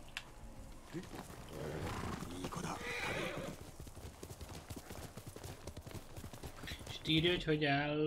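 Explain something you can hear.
Horse hooves thud rapidly on grass at a gallop.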